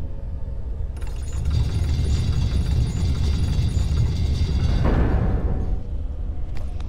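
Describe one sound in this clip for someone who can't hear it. A heavy stone gate grinds slowly open with a deep rumble.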